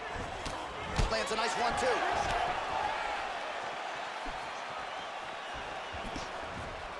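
Punches thud against a body.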